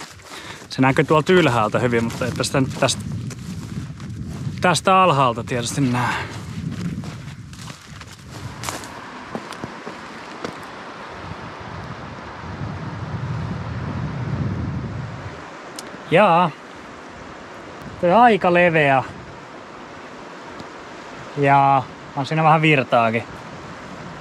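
A young man speaks calmly close to the microphone, outdoors.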